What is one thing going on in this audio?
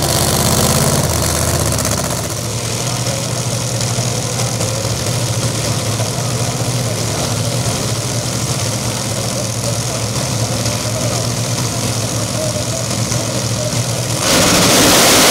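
A race car engine idles with a deep, rough rumble.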